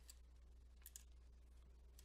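Bare feet pad softly across a wooden floor.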